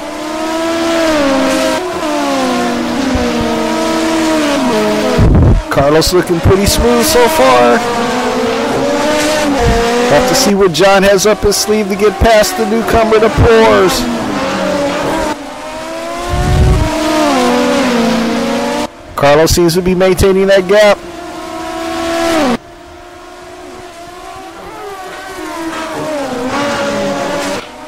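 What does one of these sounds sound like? Racing car engines roar and whine as they rev up and down through gear changes.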